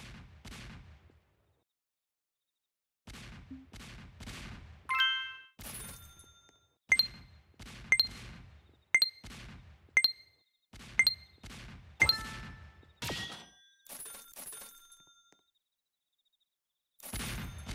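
Cannons fire in a steady run of booming shots.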